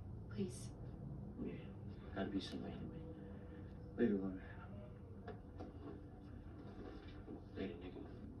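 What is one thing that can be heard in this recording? A man talks quietly, heard through a television speaker.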